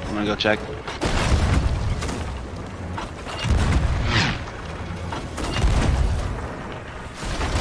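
A cannon fires with deep booms.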